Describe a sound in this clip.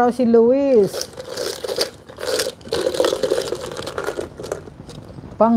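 A plastic bottle rattles and crinkles in a hand.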